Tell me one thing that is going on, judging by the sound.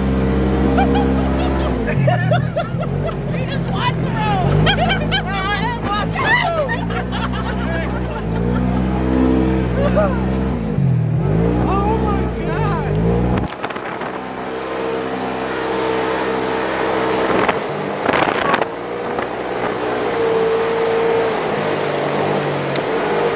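An off-road vehicle's engine hums steadily throughout.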